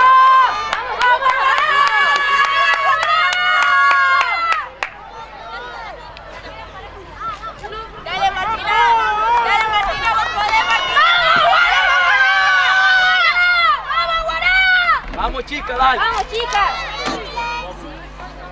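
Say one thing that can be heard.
Spectators cheer and chant loudly outdoors.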